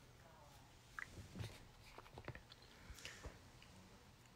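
A man speaks quietly and briefly close to the microphone.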